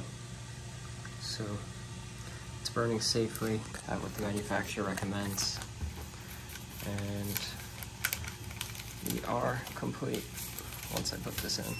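Paper rustles and crinkles in a hand.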